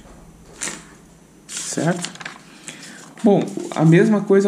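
A sheet of paper rustles as it is flipped over.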